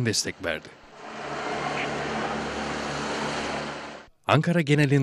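A helicopter drones overhead.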